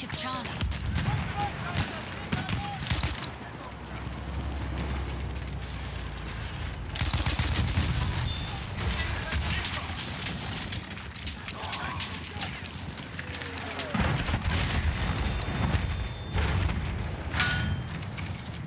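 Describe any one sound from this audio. A submachine gun fires in rapid bursts.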